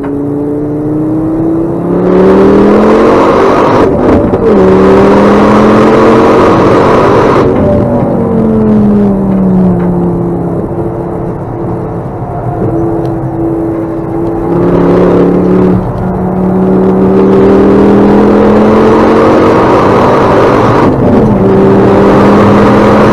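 A car engine roars loudly, its pitch climbing as it revs and dropping with each gear change.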